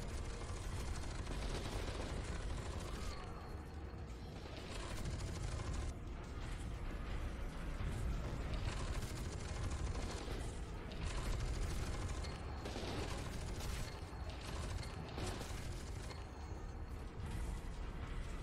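Heavy guns fire in rapid bursts with loud booming blasts.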